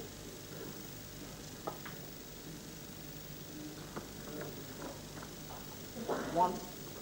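Snooker balls knock together on the table.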